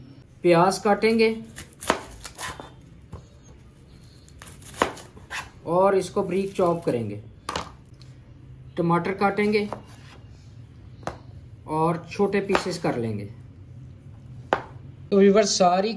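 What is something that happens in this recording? A knife cuts through vegetables onto a plastic board.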